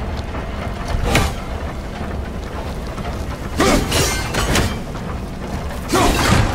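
An axe swings and strikes with heavy metallic blows.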